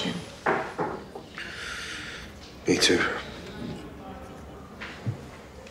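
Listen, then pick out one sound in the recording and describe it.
A man speaks quietly and calmly nearby.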